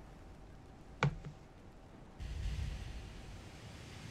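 A ship's gun fires with a dull thud.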